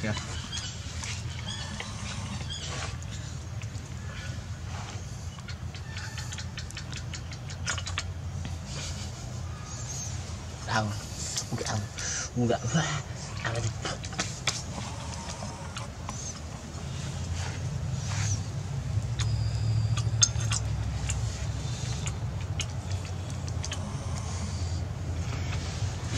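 A monkey's fingers clink and scrape against a ceramic plate.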